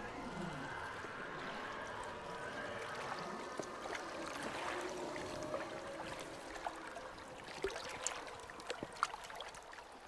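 Water splashes and laps against floating debris.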